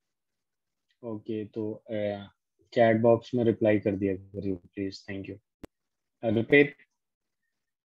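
A man speaks calmly into a close microphone, explaining.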